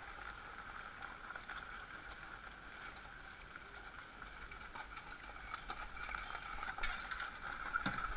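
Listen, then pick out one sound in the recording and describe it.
Horse hooves clop on a gravel track.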